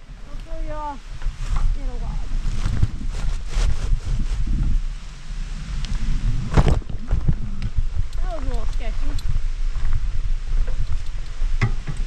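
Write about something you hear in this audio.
A bicycle frame rattles and knocks over roots and rocks.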